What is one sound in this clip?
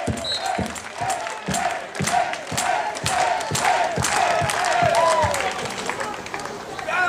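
Spectators clap in rhythm.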